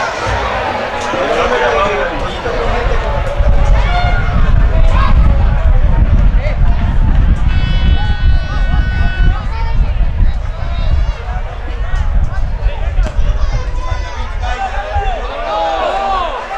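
A crowd of spectators murmurs in the stands far off.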